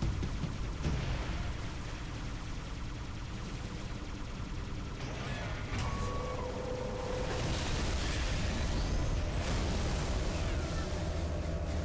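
A spacecraft engine hums and rumbles steadily.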